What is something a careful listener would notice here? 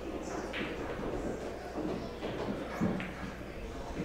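Pool balls knock together.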